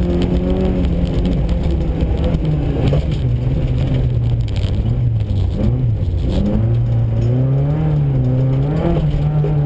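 Tyres crunch and slide over snow and gravel.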